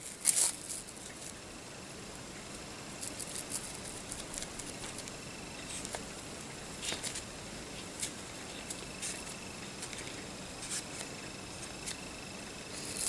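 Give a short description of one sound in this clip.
Fingers handle a small plastic part with faint rubbing and clicking.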